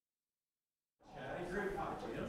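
A crowd murmurs in a large room.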